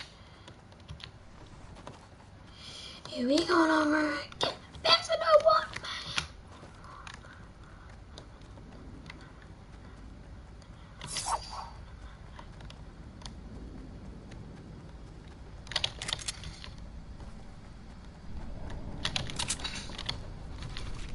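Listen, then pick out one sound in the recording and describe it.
Keys click on a keyboard.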